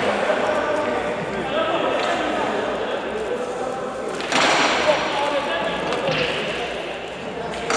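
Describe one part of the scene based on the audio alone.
A crowd of young men chatter loudly in a large echoing hall.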